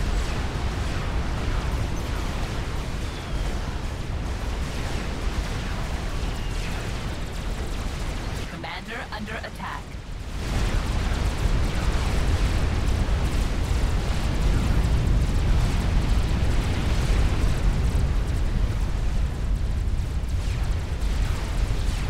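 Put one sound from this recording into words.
Explosions boom and rumble heavily in a loud battle.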